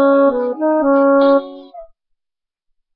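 An electronic keyboard plays a quick run of bright notes, then falls silent.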